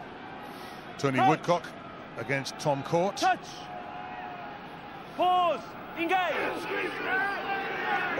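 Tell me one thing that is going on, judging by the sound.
A man shouts short commands loudly outdoors.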